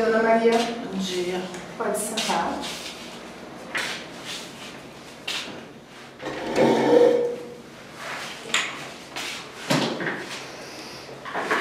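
A walking cane taps on the floor.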